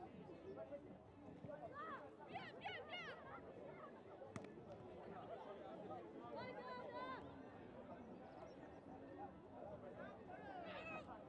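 A crowd of spectators murmurs and cheers at a distance outdoors.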